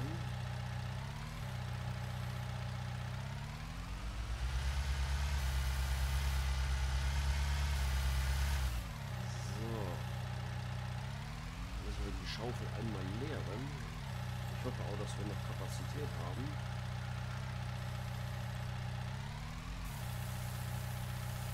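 A small loader's diesel engine idles and revs up and down.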